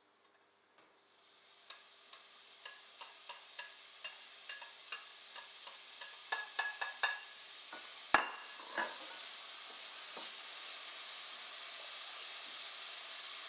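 Onions sizzle and hiss in hot oil, growing louder.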